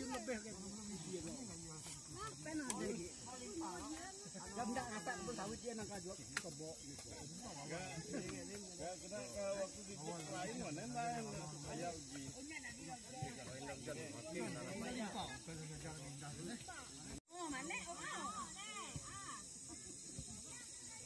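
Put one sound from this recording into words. A group of men and women chatter and call out to each other outdoors.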